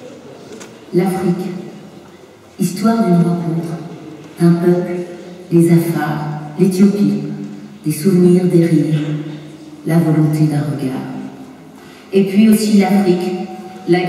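A large choir of children sings together in an echoing hall.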